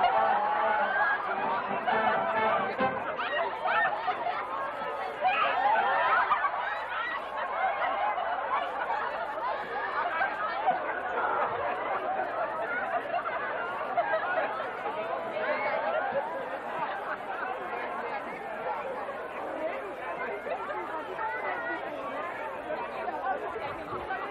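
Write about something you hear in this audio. A large outdoor crowd of men and women chatters and calls out.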